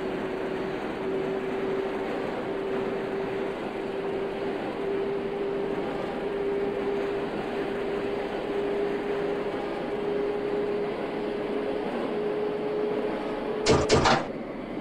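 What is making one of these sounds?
A motor whines with a steady tone.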